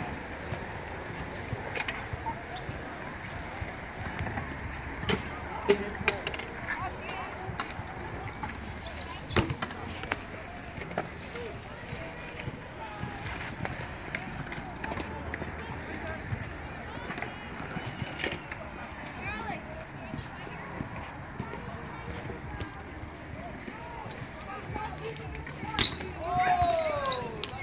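Skateboard wheels roll and rumble on concrete.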